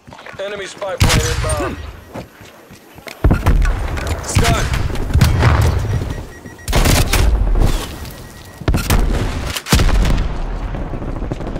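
Heavy explosions boom and rumble.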